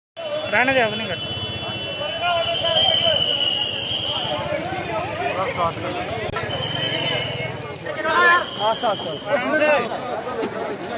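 A crowd of men talk and shout over one another nearby.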